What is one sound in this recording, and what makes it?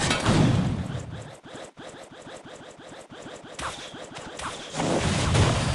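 Rapid game sound effects tick and clatter in a quick rhythm.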